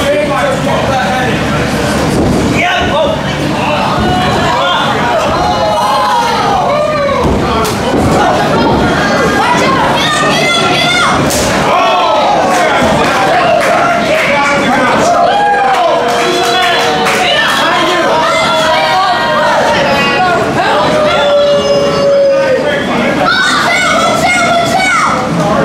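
A small crowd cheers and shouts.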